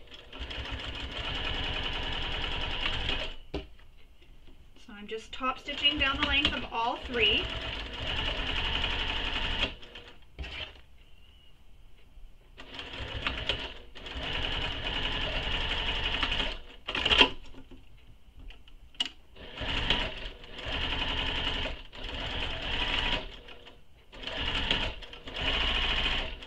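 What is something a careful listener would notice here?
A sewing machine runs in steady bursts, stopping and starting again.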